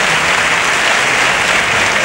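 A group of men play guitars and string instruments together.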